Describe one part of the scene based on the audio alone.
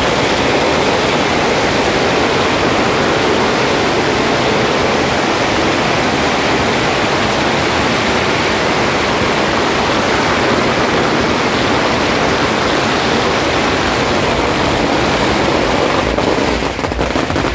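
Firecrackers crackle and pop in a rapid, dense barrage close by.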